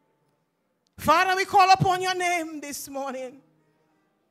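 A woman sings loudly through a microphone.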